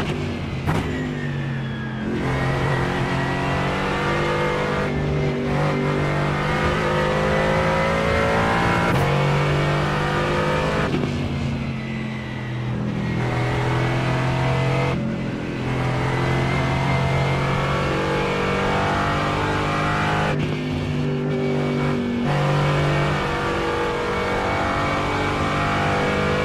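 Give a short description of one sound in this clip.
A racing car engine roars loudly, rising in pitch through each gear and dropping at each shift.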